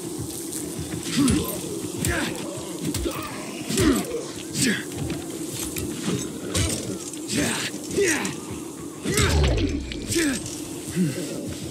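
Creatures snarl and groan.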